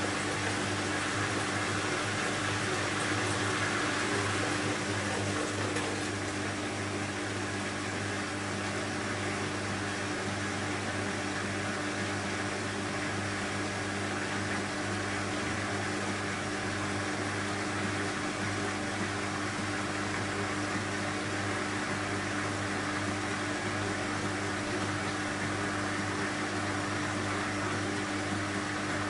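Water and laundry slosh inside a washing machine drum.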